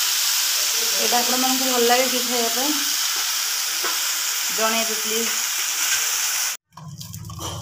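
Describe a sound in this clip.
Chopped greens sizzle and hiss in a hot pan.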